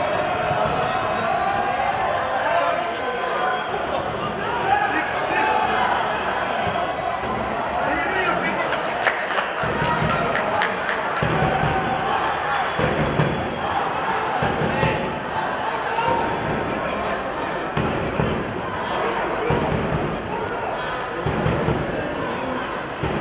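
Players shout to each other across an open pitch.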